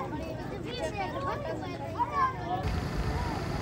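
Women talk with animation nearby.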